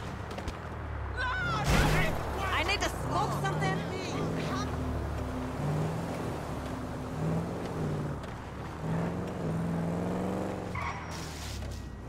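A car engine hums and revs as the car drives.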